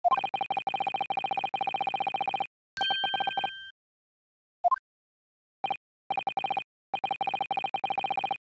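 Rapid, even electronic blips tick along in quick bursts.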